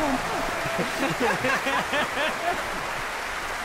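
A woman laughs heartily close by.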